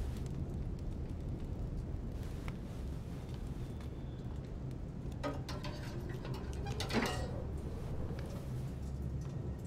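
A fire crackles softly in a stove.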